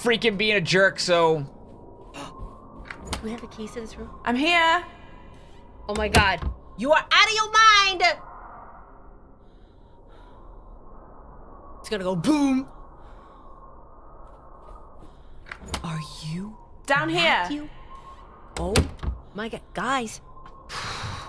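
A young woman talks and exclaims with animation into a microphone.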